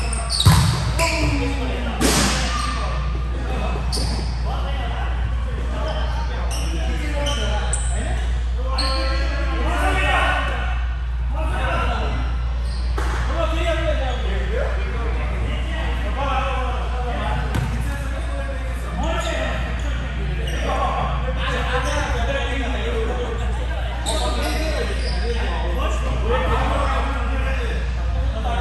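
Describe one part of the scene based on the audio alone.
Young men talk and call out in a large echoing hall.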